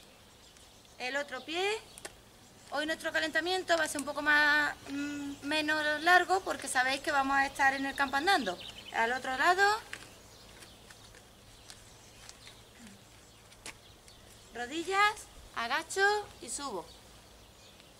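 A woman speaks clearly, giving instructions.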